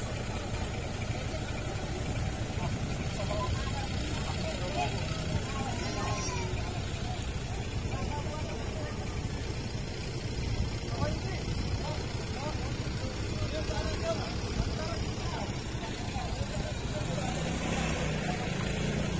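A crowd of men and women talk in the distance outdoors.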